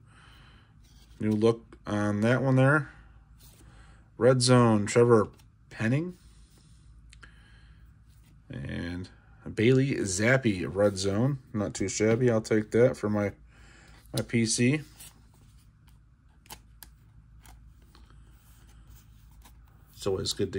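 Trading cards slide and rustle softly between fingers.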